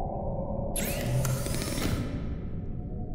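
A machine panel slides open with a whooshing hiss.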